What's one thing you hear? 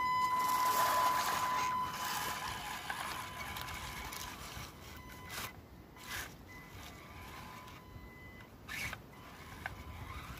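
Dry leaves crunch and rustle under a radio-controlled truck's tyres.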